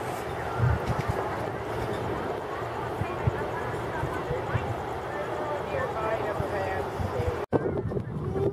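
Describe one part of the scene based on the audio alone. Tar bubbles up and pops softly in a pool.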